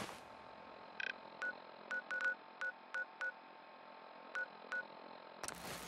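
A dial clicks repeatedly as it turns.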